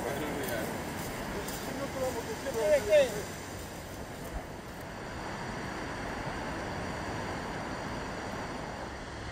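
Small waves wash gently onto a beach outdoors.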